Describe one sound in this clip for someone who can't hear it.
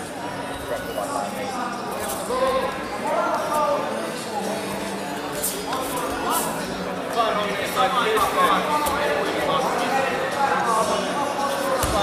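Wrestlers' bodies thud and scuffle on a mat.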